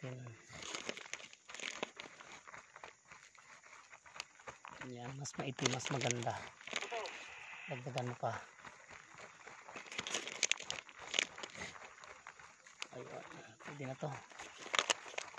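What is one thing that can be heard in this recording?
Plastic bubble wrap crinkles and rustles.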